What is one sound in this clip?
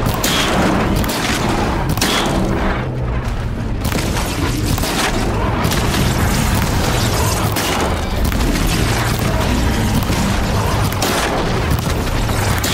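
A large machine creature clanks and stomps heavily.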